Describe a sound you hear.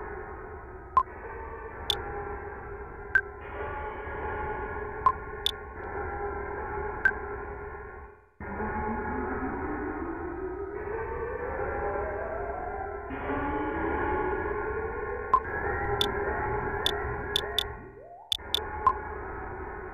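Short menu blips sound as options are chosen.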